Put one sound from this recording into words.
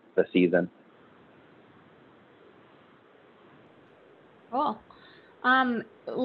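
An elderly man speaks calmly through an online call, in short bursts.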